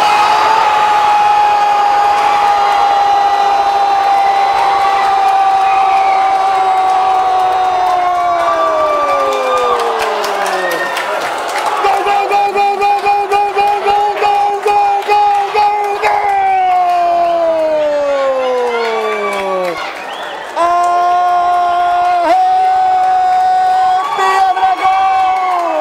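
A crowd cheers loudly in a stadium.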